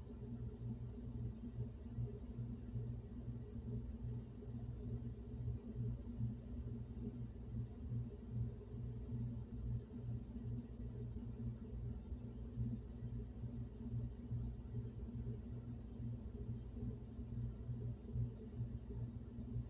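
Air blows steadily through a floor vent with a low, pulsing hum.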